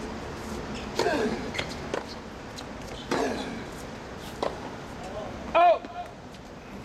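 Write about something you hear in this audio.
A young man grunts loudly as he hits the ball.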